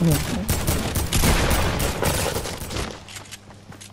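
A gun fires a rapid burst.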